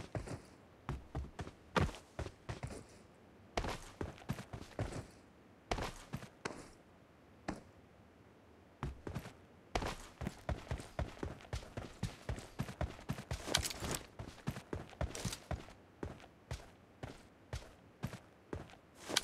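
Footsteps thud quickly and steadily on dirt.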